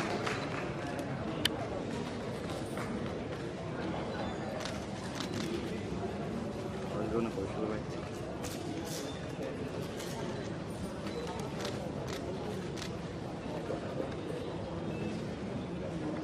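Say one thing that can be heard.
Several men and women chatter nearby.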